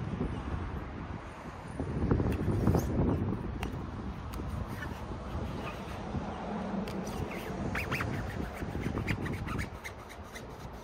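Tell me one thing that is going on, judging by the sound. A plastic squeegee rubs across vinyl film.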